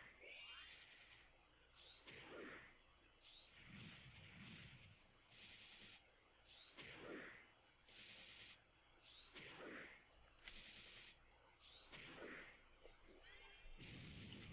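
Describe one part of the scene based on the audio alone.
Magical game sound effects whoosh and shimmer in repeated bursts.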